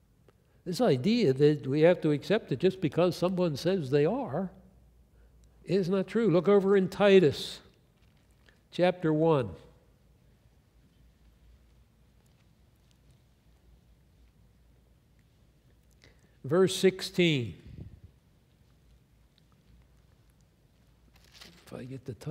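An elderly man speaks slowly and calmly through a microphone, with long pauses.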